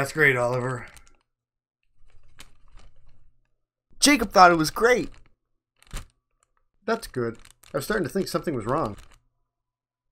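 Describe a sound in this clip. A man speaks in a cartoonish puppet voice, close by.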